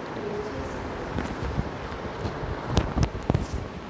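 A clip-on microphone rustles and knocks as it is handled.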